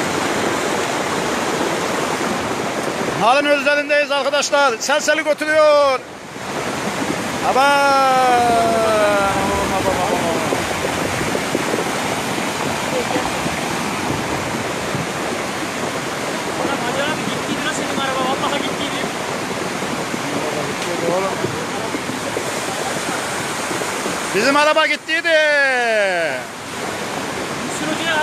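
Muddy floodwater rushes and roars steadily.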